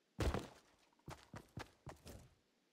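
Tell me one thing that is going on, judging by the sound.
Footsteps thud on grass.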